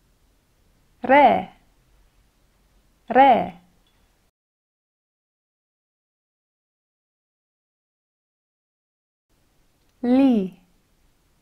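A young woman speaks short words clearly into a close microphone, with long pauses between them.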